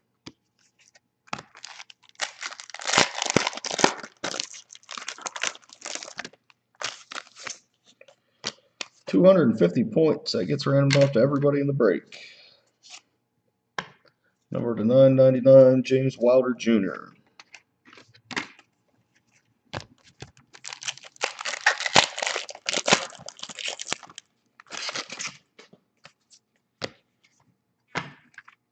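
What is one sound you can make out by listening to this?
Cards rustle and slide against each other as they are shuffled.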